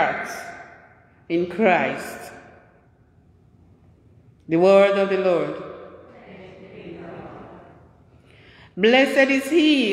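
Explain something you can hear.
An older man sings slowly through a microphone, with long notes echoing in a large hall.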